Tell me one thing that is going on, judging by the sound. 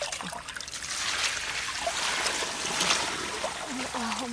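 Water pours onto snails in a basket.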